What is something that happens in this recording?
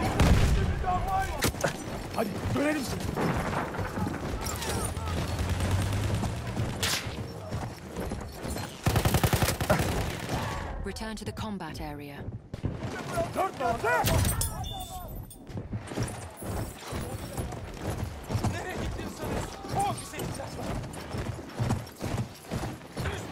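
A horse gallops with pounding hooves on sand.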